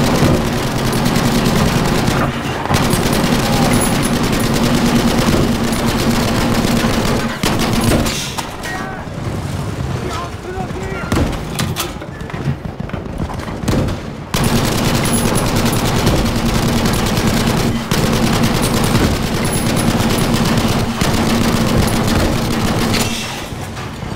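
A tank engine rumbles loudly nearby.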